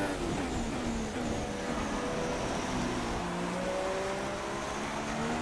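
A racing car engine screams at high revs, dropping in pitch as it shifts gears.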